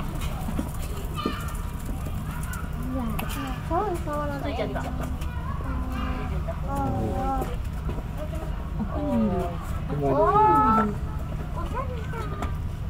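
A lemur chews food with soft smacking sounds.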